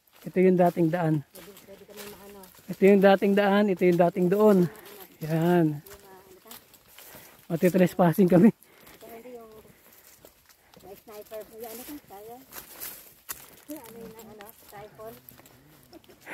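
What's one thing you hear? Footsteps crunch on dry leaves along a dirt path.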